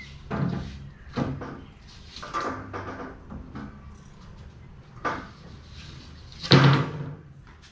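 A wooden panel knocks and clatters against a metal frame.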